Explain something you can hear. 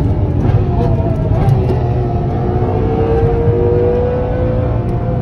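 Wind rushes past the car.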